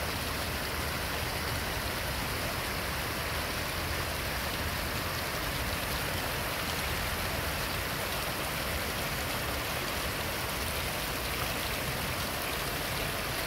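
Rushing water roars steadily outdoors.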